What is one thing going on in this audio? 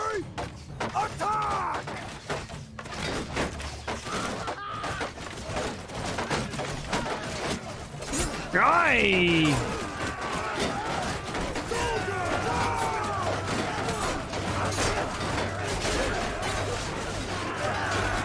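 Many men shout and yell in a battle, close and all around.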